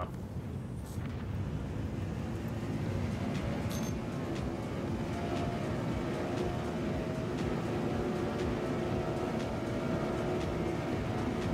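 A spacecraft engine hums with a low, steady rumble.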